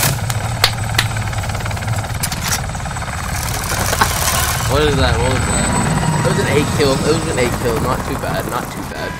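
A helicopter's rotor thumps and rumbles steadily.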